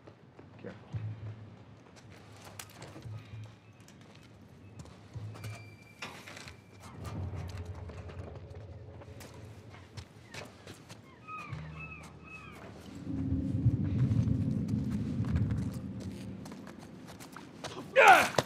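Footsteps shuffle softly on hard ground.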